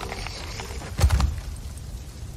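A heavy body thuds onto wooden boards.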